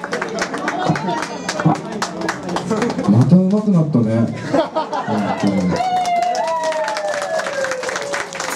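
A rock band plays loudly.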